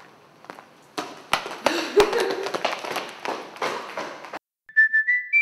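Sneakers tap quickly on a hard floor.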